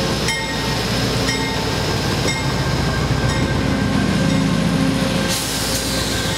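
A diesel passenger locomotive roars past at close range.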